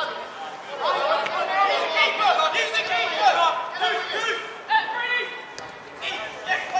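Several men shout and call out across an open field.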